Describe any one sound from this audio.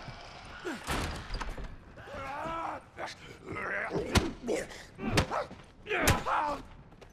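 Gunshots ring out one at a time.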